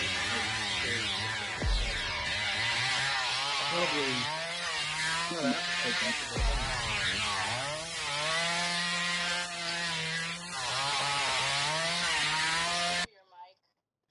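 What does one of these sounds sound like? A chainsaw engine revs loudly, rising and falling in pitch.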